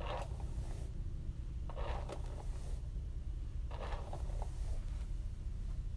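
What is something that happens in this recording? Fingers rustle through hair.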